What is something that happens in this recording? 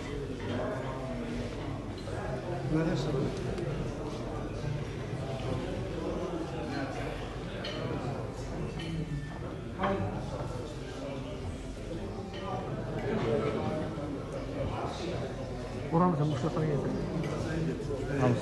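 Many men talk at once in a steady murmur of chatter.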